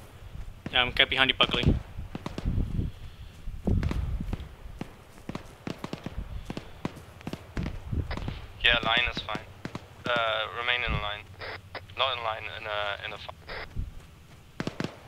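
Footsteps crunch on dry, rocky ground.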